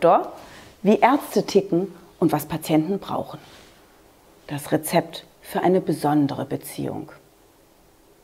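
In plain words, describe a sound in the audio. A woman speaks animatedly and close by.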